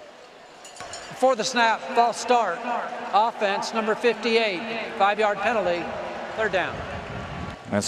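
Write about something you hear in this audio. A middle-aged man announces a penalty through a stadium loudspeaker, echoing outdoors.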